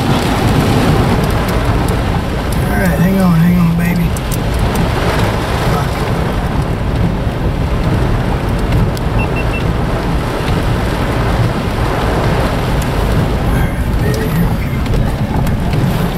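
Heavy rain pelts against a car windshield.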